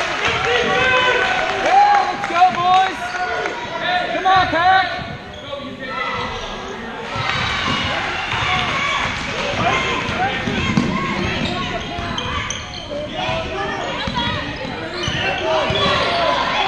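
Sneakers squeak sharply on a wooden court, echoing in a large hall.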